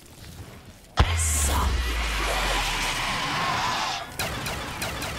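An explosion bursts with a roar.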